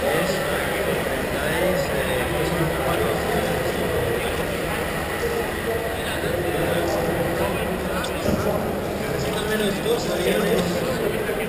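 Many people talk at once in a large, echoing hall.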